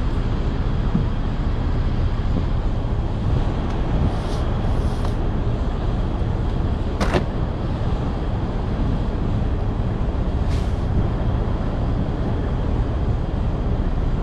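A heavy tarp rustles and scrapes as it is dragged.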